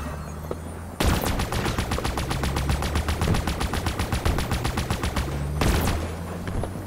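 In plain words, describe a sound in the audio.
Gunfire bursts in rapid repeated shots.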